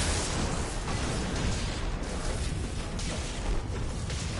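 A storm wall hums and crackles with electricity.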